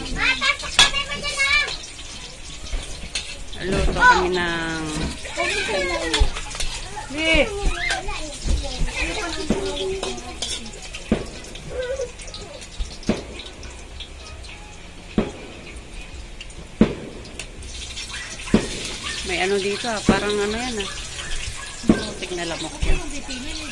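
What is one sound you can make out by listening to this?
A metal spatula clanks against a wok.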